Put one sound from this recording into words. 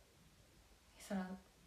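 A young woman says a short word close to the microphone.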